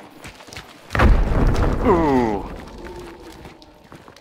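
A heavy blast booms and rumbles close by.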